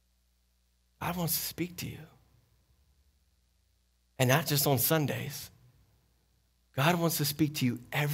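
A man speaks with animation through a microphone, in bursts with pauses.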